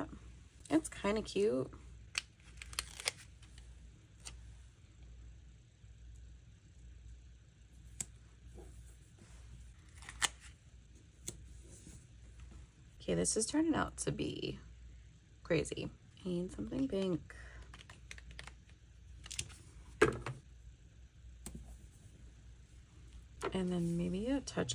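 Paper rustles and crinkles close by.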